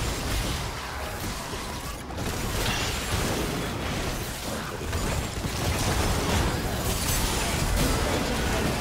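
Magic spells burst and crackle in a fast battle.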